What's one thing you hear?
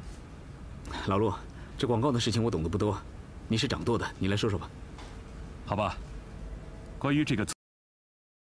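Another man answers calmly nearby.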